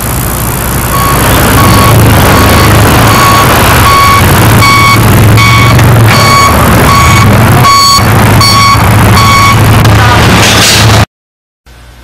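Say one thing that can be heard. An ambulance siren blares in loud, rapid pulses.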